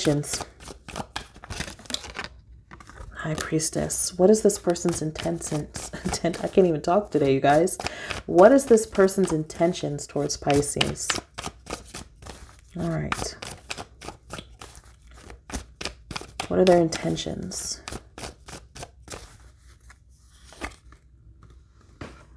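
Playing cards are shuffled with quick, crisp flicks, close by.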